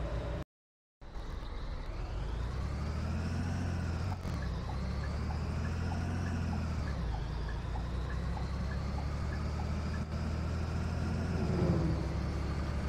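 A bus engine revs up and down as the bus pulls away.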